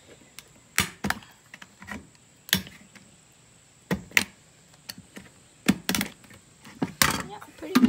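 Metal snips click sharply as they cut through thin plastic.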